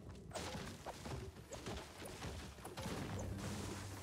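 A pickaxe strikes wood with repeated knocks.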